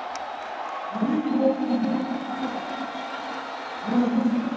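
A woman nearby cheers and shouts with excitement.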